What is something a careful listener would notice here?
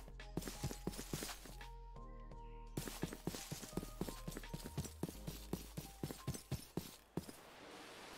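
Footsteps tread quickly on grass.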